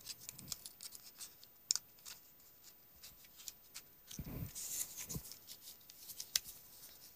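Fingers tap on a keyboard with quick clicks.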